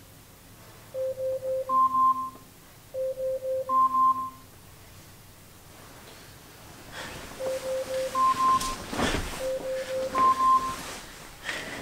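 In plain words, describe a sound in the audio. An alarm chimes repeatedly in short rising tones.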